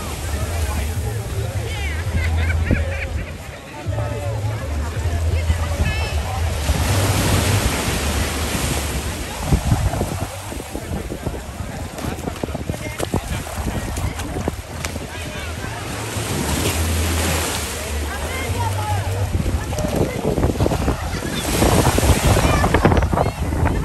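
Waves wash against rocks.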